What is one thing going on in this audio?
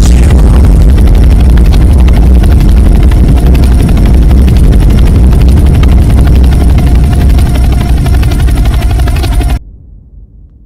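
Helicopter rotor blades thump loudly and steadily.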